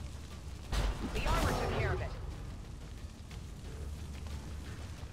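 A small fire crackles and roars low.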